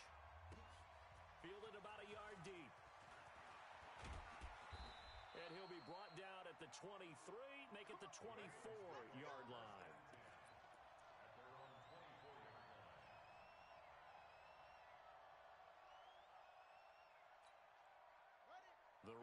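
A stadium crowd roars steadily.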